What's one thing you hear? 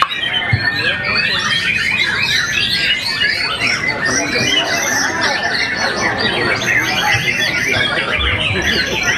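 Many caged songbirds chirp and whistle busily and without pause.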